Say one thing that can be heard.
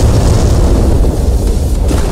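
An energy beam roars with a loud whooshing blast.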